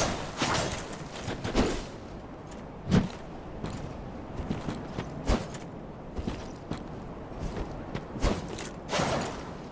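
A sword swings and whooshes through the air.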